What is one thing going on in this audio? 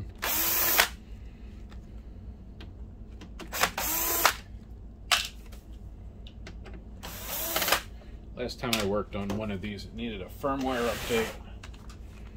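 A cordless drill whirs in short bursts, its motor rising in pitch.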